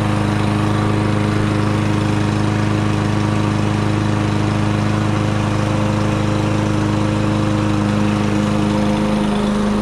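A petrol lawn mower engine runs steadily close by.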